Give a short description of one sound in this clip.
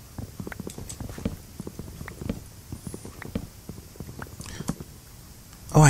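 Game blocks make soft, quick thuds one after another.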